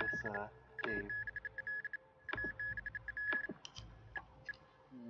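Electronic game menu beeps chirp rapidly in short bursts.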